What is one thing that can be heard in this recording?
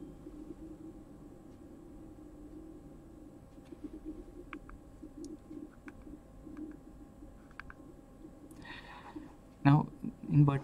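A woman speaks calmly through a microphone, as if in an online call.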